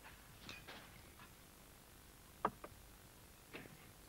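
A glass clinks against a table.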